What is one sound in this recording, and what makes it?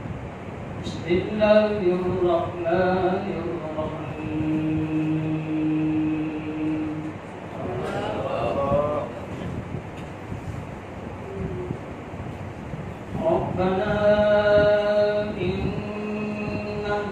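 A man chants in a melodic voice into a microphone, with a slight room echo.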